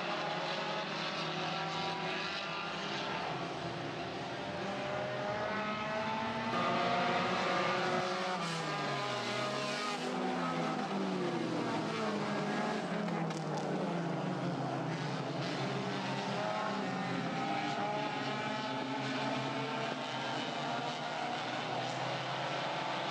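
Race car engines roar and whine as cars speed around a track.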